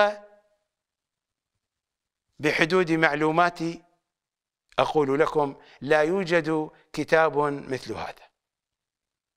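An older man speaks with animation into a close microphone.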